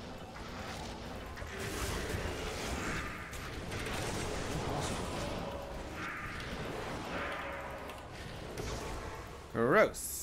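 Spells crackle and burst in rapid bursts.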